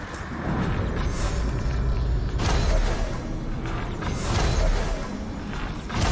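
A bowstring snaps as arrows are loosed.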